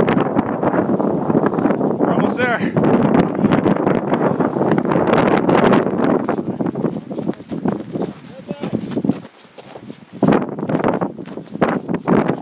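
Strong wind roars and buffets the microphone outdoors.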